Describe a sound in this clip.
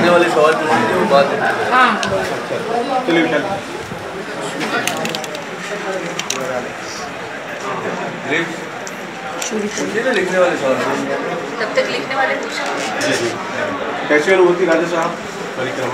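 Several men talk nearby in a busy room.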